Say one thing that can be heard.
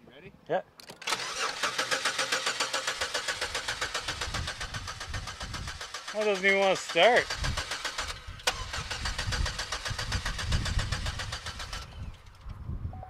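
A car engine starts and runs with a steady, rough drone.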